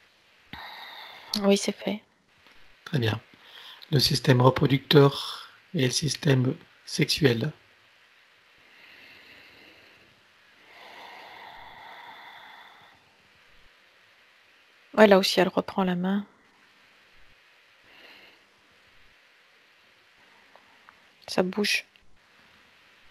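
A man speaks calmly through a headset microphone over an online call.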